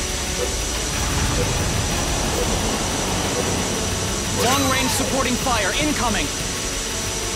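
A jet pack roars steadily.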